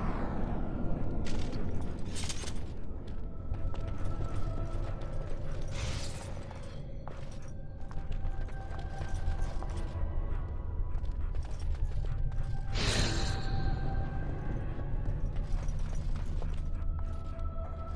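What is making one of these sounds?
A dog's paws patter softly on a stone floor.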